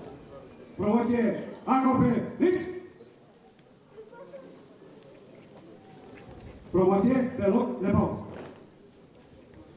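A man chants a prayer into a microphone, heard through loudspeakers outdoors.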